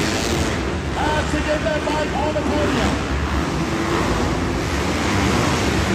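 A dirt bike engine revs loudly and roars over jumps.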